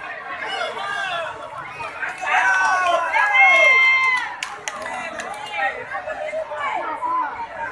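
A large outdoor crowd of men shouts and cheers excitedly close by.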